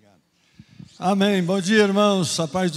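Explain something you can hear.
A second man speaks through a microphone.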